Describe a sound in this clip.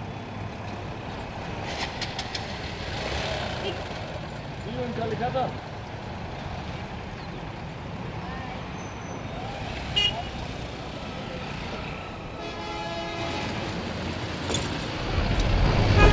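Traffic rumbles past on a busy road outdoors.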